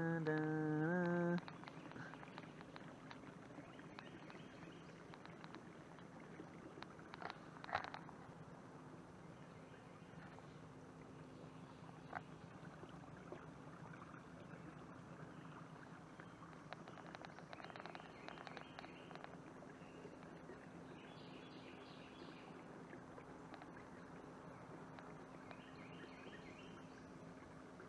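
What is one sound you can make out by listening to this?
Water laps and splashes softly against a canoe as it glides.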